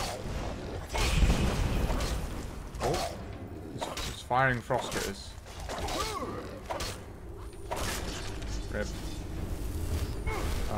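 Metal weapons clash and strike in a fight.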